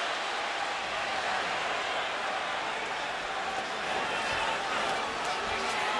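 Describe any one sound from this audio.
Punches thud on gloves and bodies.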